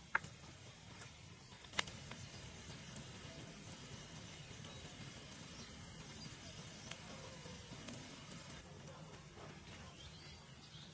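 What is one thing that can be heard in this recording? A wood fire crackles and pops outdoors.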